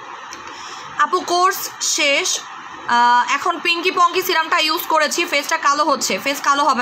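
A young woman speaks close to a microphone with animation.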